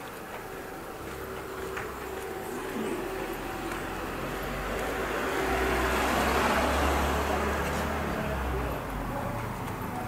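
A car approaches slowly and passes close by.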